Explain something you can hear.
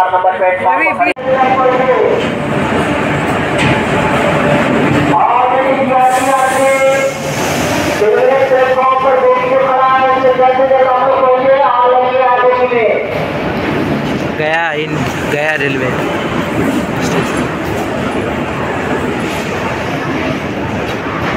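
A crowd of people murmurs and talks outdoors.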